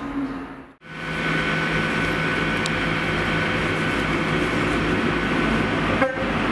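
A diesel train's engine hums steadily as it pulls in.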